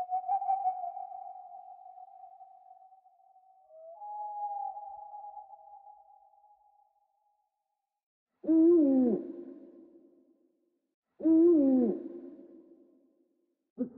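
An owl hoots in low, wavering calls that echo and fade.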